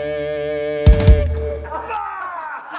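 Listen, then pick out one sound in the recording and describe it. A band holds a loud sustained electric chord.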